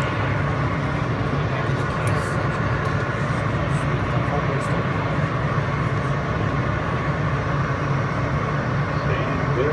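A vehicle rumbles steadily, heard from inside.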